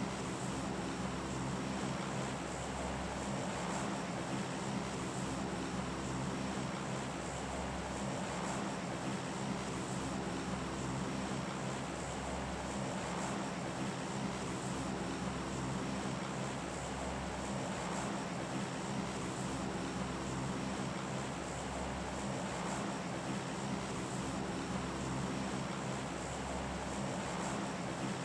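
Helicopter rotors whir close by.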